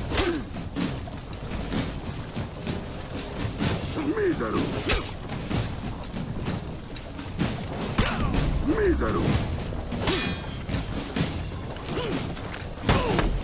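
Swords clash and clang with sharp metallic strikes.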